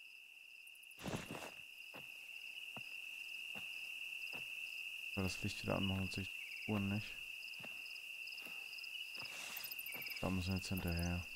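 Dry corn stalks rustle as someone walks through them.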